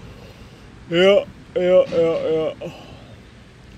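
A man speaks briefly and with animation through a microphone.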